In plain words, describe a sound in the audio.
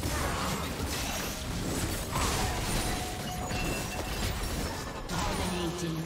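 Game spells and attacks crackle and burst in a busy fight.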